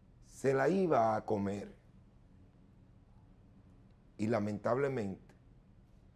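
A man speaks with animation into a close microphone, in short bursts.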